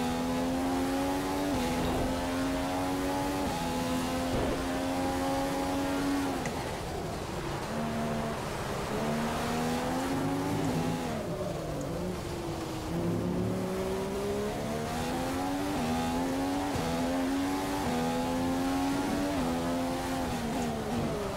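A racing car engine screams at high revs, shifting gears up and down.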